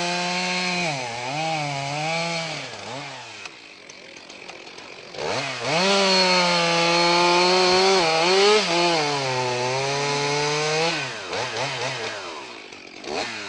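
A chainsaw engine roars and revs loudly, its pitch rising and falling.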